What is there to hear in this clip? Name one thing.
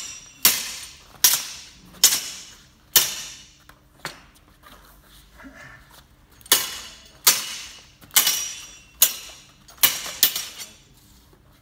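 Steel swords clash and ring sharply in an echoing hall.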